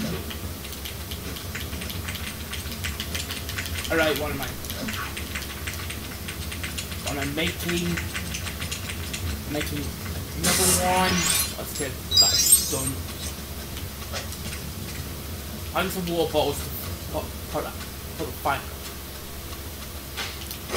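Video game sound effects play from a television, with bursts, clatter and short musical tones.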